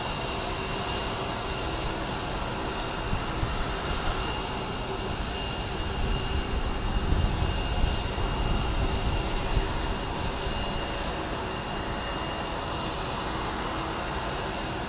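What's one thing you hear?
A large jet's engines whine steadily nearby.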